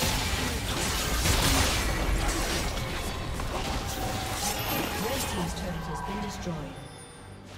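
Video game combat effects crackle and burst loudly.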